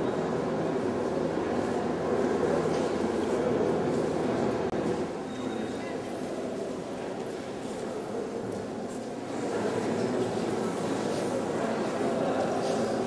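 A crowd of men and women murmur and chatter in a large echoing hall.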